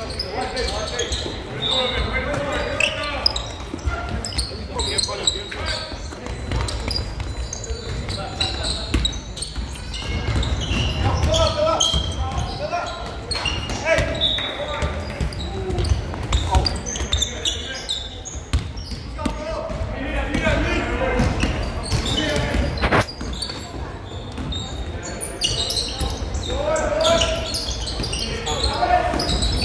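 Sneakers squeak sharply on the court floor.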